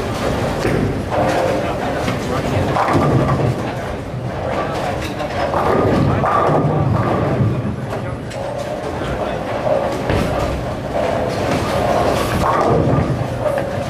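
Bowling balls rumble down wooden lanes.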